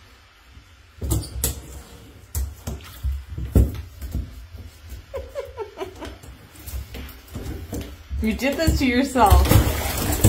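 A cat scrambles and thumps against a bathtub.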